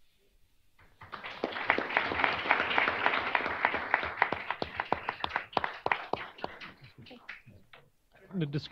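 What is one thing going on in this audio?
A small group applauds in a large room.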